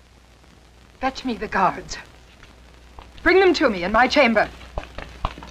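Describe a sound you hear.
A woman speaks firmly and clearly.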